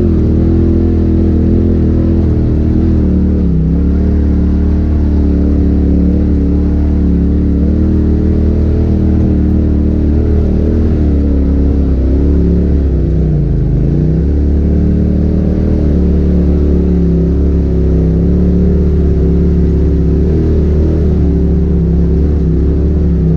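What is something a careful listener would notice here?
An off-road vehicle's engine hums and revs up and down steadily close by.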